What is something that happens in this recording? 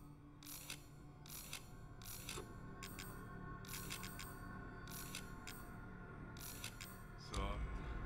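Short menu clicks tick one after another.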